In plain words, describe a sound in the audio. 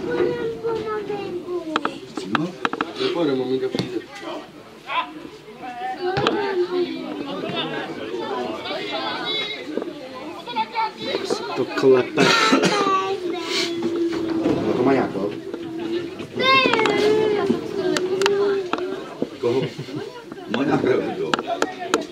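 Spectators talk and call out close by, outdoors.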